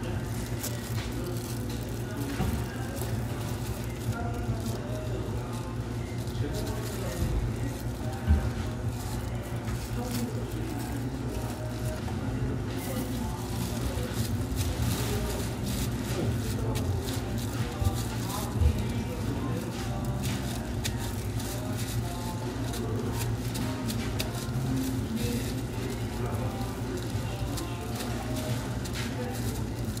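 Plastic gloves and wrap crinkle as hands wrap food.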